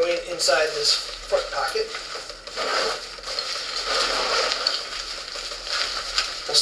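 Nylon fabric rustles as a backpack is handled.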